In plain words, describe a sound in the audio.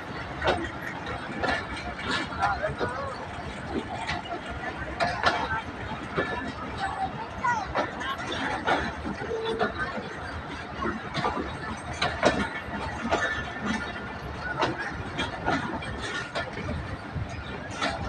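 Train wheels squeal against the rails.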